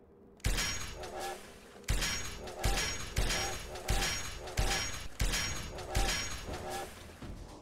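Gunshots boom one after another, each ringing out briefly.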